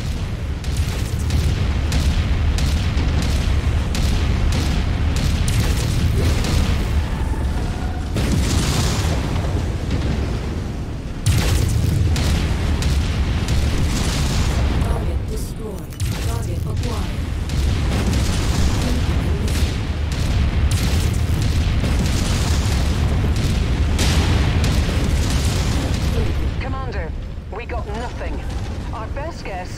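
Heavy weapons fire in rapid bursts.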